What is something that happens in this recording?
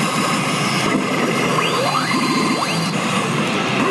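A gaming machine sounds sweeping electronic effects that rise in pitch.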